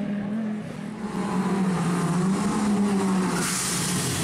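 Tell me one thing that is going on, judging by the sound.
A rally car engine roars as the car approaches.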